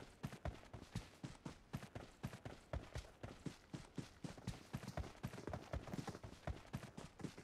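Quick footsteps thud and rustle through grass at a run.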